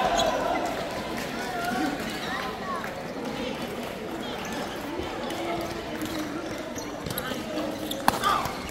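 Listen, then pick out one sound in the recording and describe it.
Badminton rackets smack a shuttlecock.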